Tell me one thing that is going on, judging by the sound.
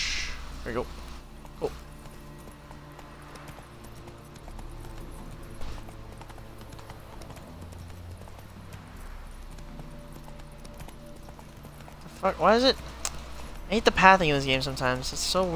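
Horse hooves thud along a dirt road.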